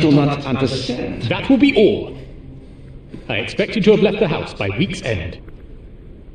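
A man speaks firmly and sternly up close.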